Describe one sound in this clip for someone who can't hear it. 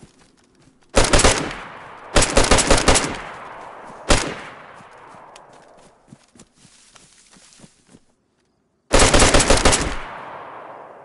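A rifle fires in loud rapid bursts that echo across open ground.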